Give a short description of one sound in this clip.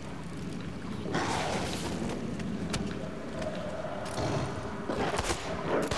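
A big cat snarls and growls close by.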